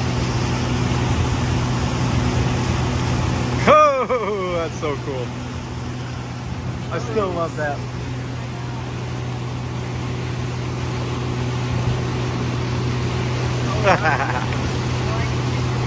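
Water rushes and splashes behind a moving boat.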